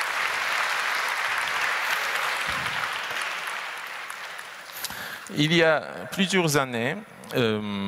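A young man speaks through a headset microphone in a large echoing hall.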